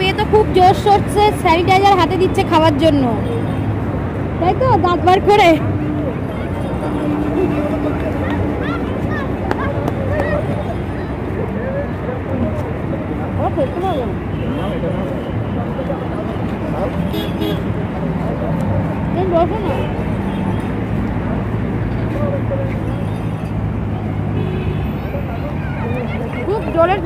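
A young woman talks animatedly close by.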